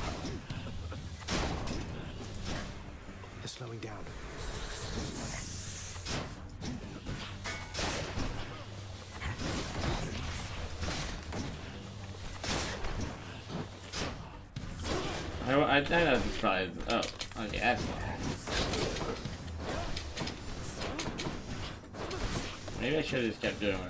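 Game sound effects burst and clash.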